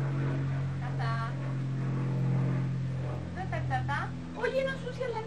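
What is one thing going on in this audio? A small child makes a high babbling sound.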